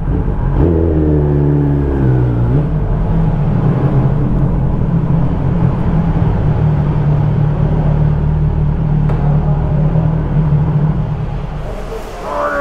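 A motorcycle engine idles and rumbles close by.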